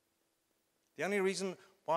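A man speaks into a microphone over loudspeakers in a large hall.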